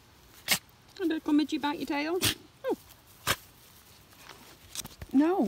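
A small dog whines in high, wavering cries close by.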